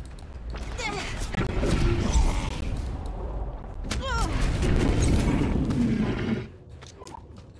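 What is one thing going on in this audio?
A beast growls and roars.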